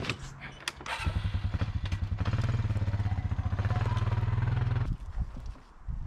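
An all-terrain vehicle engine idles with a steady low rumble close by.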